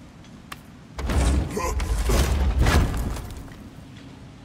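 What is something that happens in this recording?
A heavy chest lid bursts open with a deep rumble.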